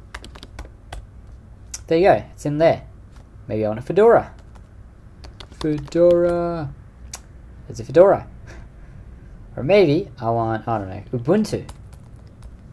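Computer keys click as someone types.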